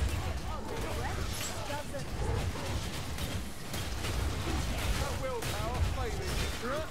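Blades hack and thud into a crowd of attackers in a video game fight.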